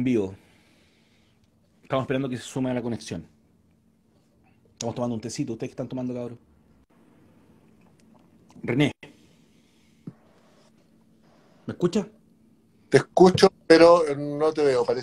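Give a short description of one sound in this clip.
A middle-aged man talks calmly and close by, in short bursts.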